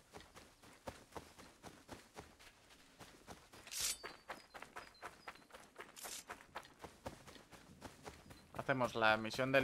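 Footsteps rustle quickly through dry grass.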